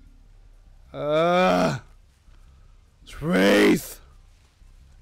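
A young man speaks loudly into a close microphone in two short bursts.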